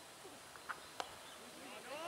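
A cricket bat hits a ball with a sharp crack.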